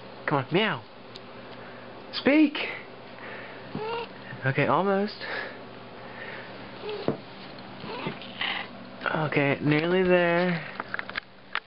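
A cat meows repeatedly, up close.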